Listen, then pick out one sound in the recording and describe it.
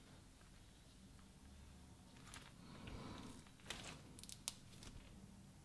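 Slime crackles and pops as a hand presses it flat.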